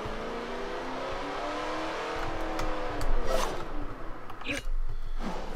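A car engine revs and roars, then drops in pitch as the car slows.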